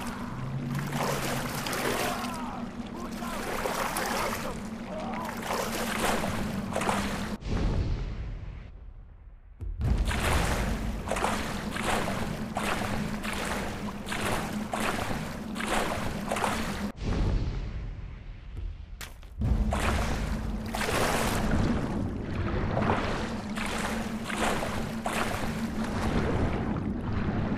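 Water splashes rhythmically with swimming strokes.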